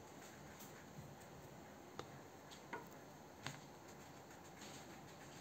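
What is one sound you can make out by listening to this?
A crayon scratches softly on paper.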